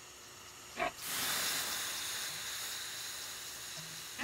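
Water hisses and sizzles as it is poured onto hot stones.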